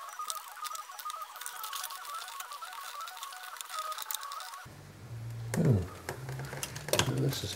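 Small plastic and metal parts of a cassette mechanism click and rattle under fingers.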